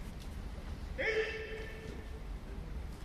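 A man calls out loudly and long, echoing through a large hall.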